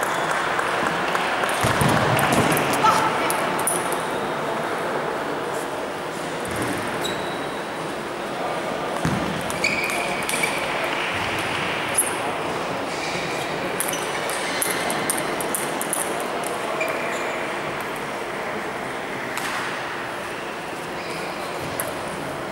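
A table tennis ball clicks sharply off paddles and the table in a large echoing hall.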